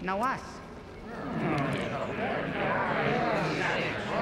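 A crowd of creatures murmurs and gibbers over one another.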